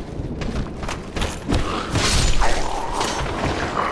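A heavy weapon swings and strikes a body.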